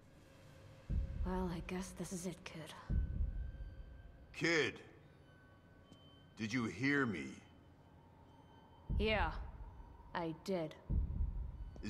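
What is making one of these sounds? A young woman speaks quietly and flatly.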